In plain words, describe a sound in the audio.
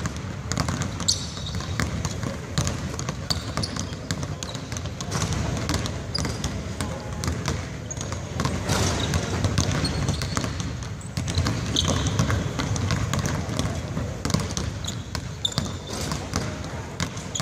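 Basketballs bounce on a hard court in a large echoing hall.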